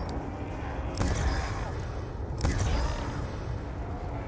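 A ray gun fires with sharp electronic zaps.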